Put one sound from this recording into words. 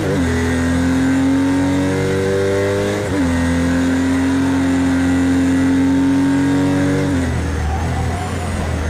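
A racing car engine roars at high revs, rising steadily in pitch.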